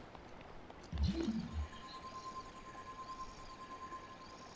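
A magical ice effect whooshes and rings with a steady chime.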